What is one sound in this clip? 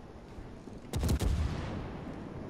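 Heavy ship guns fire with deep, rumbling booms.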